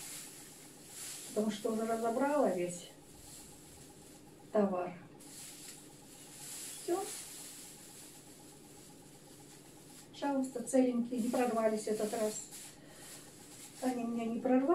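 Plastic gloves rustle and crinkle in a woman's hands.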